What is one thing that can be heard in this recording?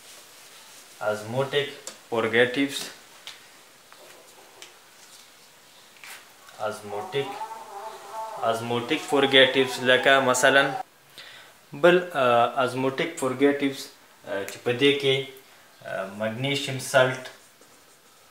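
A man speaks calmly and slowly, close by, as if teaching.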